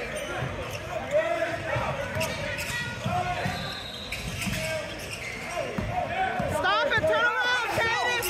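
A basketball bounces with hard thumps on a wooden floor.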